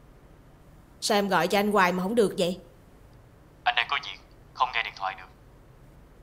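A young woman speaks into a phone close by.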